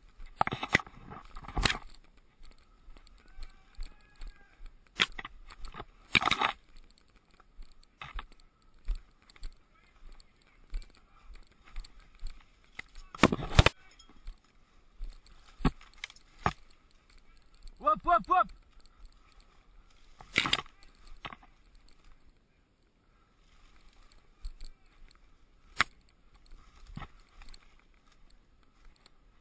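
Branches and undergrowth rustle and snap as someone pushes through dense brush.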